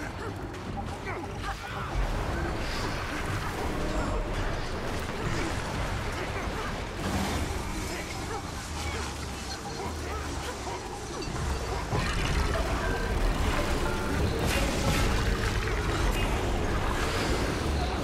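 Spell effects crackle and boom as game characters fight.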